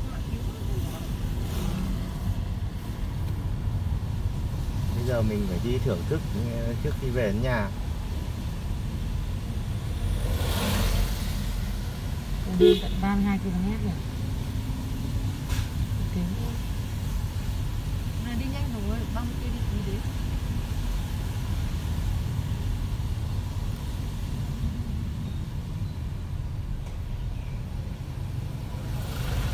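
Tyres swish on a wet road.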